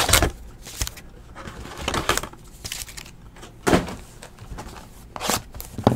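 Card packs rustle and slide as hands move them.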